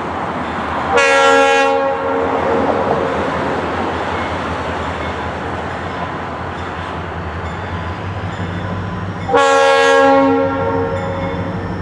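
A train horn blows long blasts in the distance.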